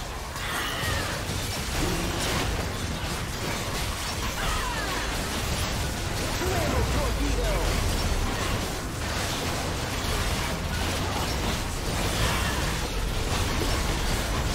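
Spell effects crackle and burst over and over in a busy game fight.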